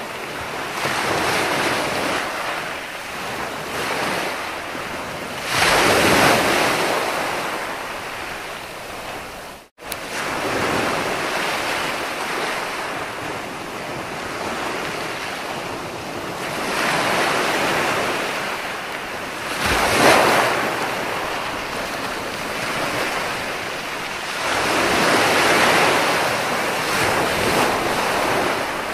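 Waves break and wash up onto a shore in surges that rise and fall.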